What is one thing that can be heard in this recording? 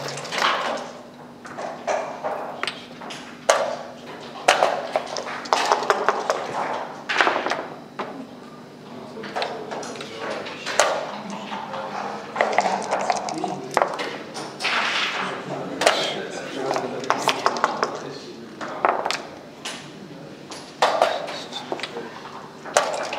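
Wooden pieces click on a board as they are moved.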